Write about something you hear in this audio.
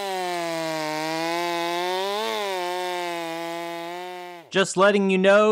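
A chainsaw engine idles steadily.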